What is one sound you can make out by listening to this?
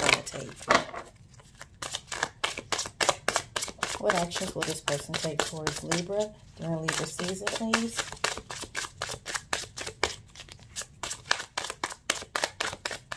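Cards are shuffled with quick, crisp riffling clicks close by.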